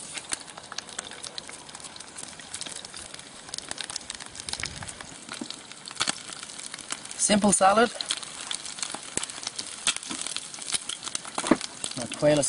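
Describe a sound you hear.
Meat sizzles and crackles in a frying pan.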